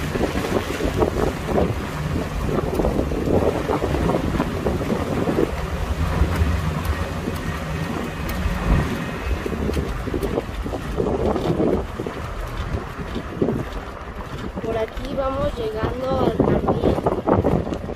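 A car engine hums steadily from inside the car as it drives slowly along a street.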